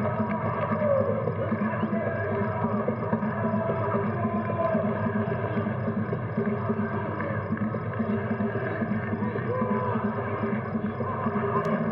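Young men shout as they celebrate.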